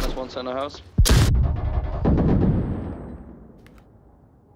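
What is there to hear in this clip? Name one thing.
A loud explosion booms close by and rumbles away.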